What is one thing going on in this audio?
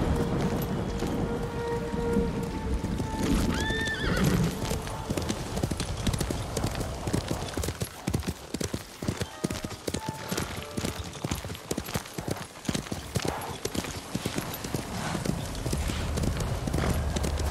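Horse hooves thud rapidly on soft ground at a gallop.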